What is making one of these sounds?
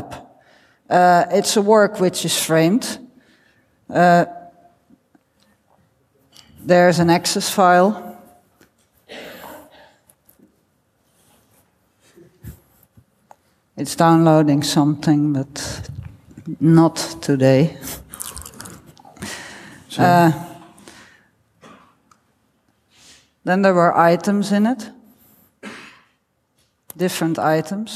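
A woman speaks calmly through a microphone in a hall, with pauses.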